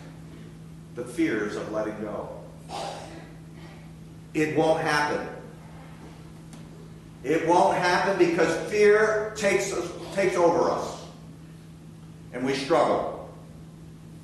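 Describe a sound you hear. An older man speaks calmly and with feeling, in short phrases with pauses.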